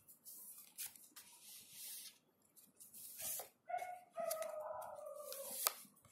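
Cards slap softly onto a cloth-covered table.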